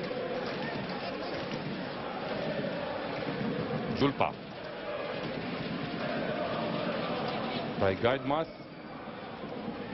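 A large stadium crowd murmurs and chants steadily in the distance.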